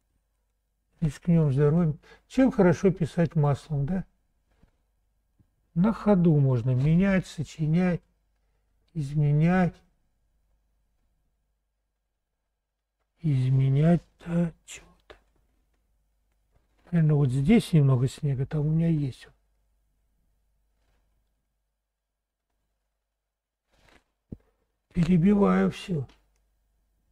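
An older man speaks calmly close to a microphone, in short phrases with pauses.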